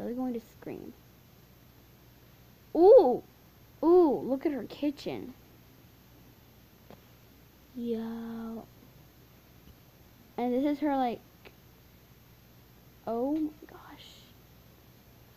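A young girl speaks in short, animated bursts close to the microphone.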